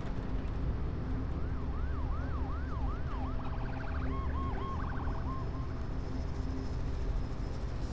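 A car engine rumbles steadily from inside the car.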